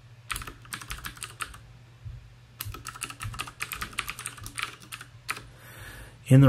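Keys clatter in quick bursts of typing on a keyboard.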